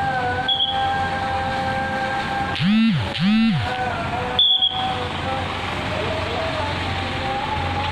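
A large bus engine rumbles close by as the bus drives past.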